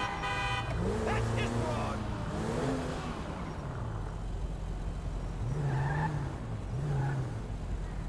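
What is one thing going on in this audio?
A car engine hums as the car drives along.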